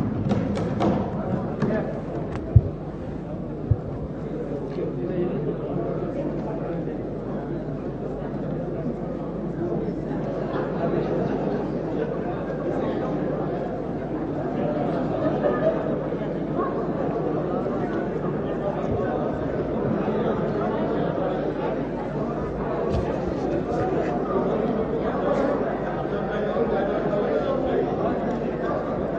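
Many men and women talk and shout at once in a large echoing hall.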